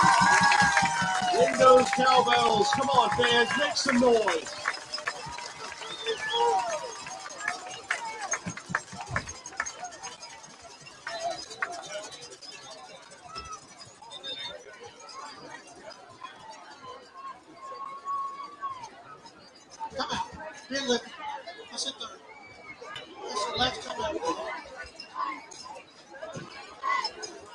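Young men shout and call out nearby.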